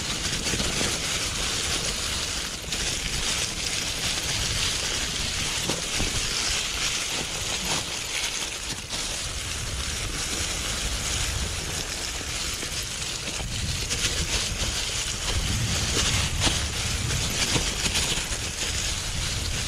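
Mountain bike tyres crunch over dry fallen leaves on a dirt trail.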